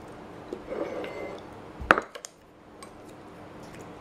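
A bowl clinks as it is set down on a table.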